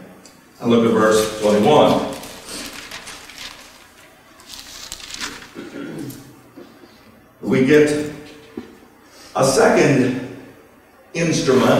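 A middle-aged man speaks steadily into a microphone, heard through a loudspeaker in an echoing hall.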